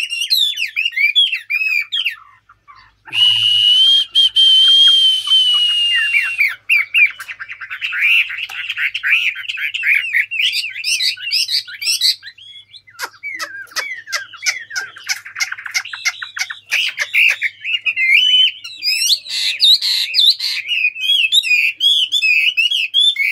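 A small bird sings a fast, varied, chattering song up close.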